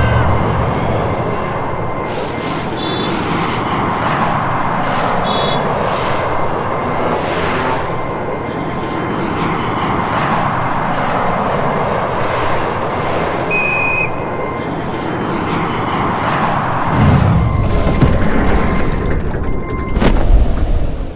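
Coins chime quickly as they are picked up.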